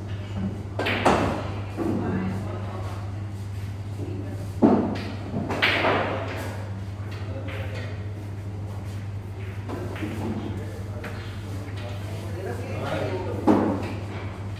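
Pool balls clack sharply together.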